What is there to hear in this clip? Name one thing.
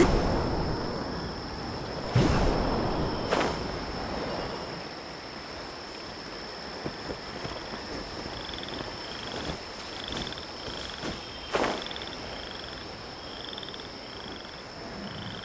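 Wind rushes past steadily during a glide through the air.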